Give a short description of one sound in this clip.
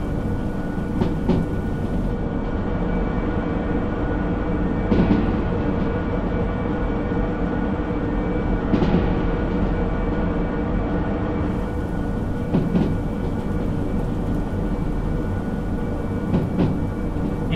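Train wheels clack over rail joints now and then.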